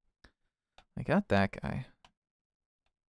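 A man speaks briefly into a microphone, close by.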